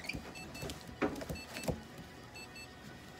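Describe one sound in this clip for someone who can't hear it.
Paper tissue rustles and crinkles close by.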